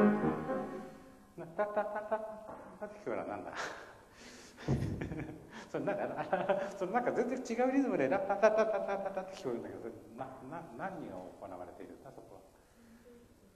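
A man talks in an echoing hall.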